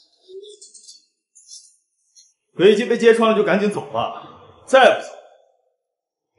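A middle-aged woman speaks loudly and firmly.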